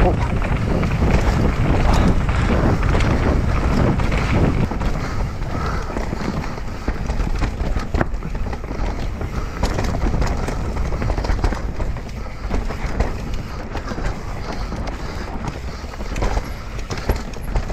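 Mountain bike tyres rattle and crunch over a rough dirt trail.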